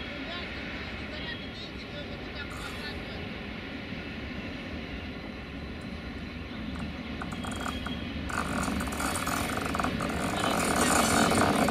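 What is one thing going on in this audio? An electric locomotive approaches along the rails, its rumble growing louder.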